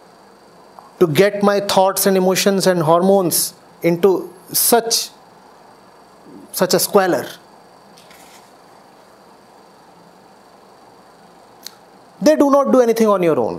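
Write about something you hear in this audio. A middle-aged man speaks with animation and emphasis into a close microphone, pausing often.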